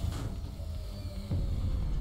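A laser beam fires with a steady electric hum.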